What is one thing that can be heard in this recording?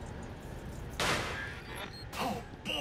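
A metal grate clangs as it is wrenched loose.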